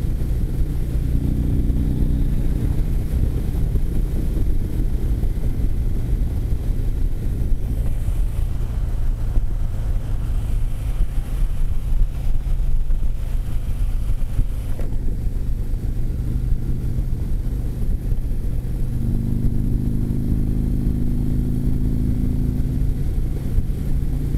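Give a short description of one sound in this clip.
Wind roars over a motorcycle windscreen.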